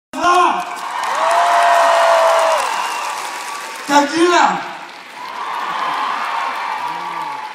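A large crowd cheers in a big echoing hall.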